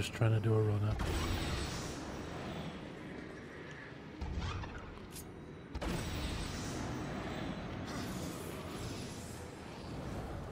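Magical blasts whoosh and roar.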